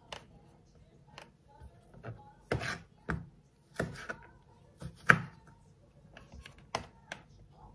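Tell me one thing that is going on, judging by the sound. Orange wedges are set into a plastic container.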